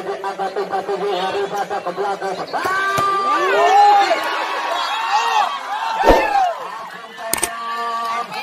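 A volleyball is spiked with a sharp slap.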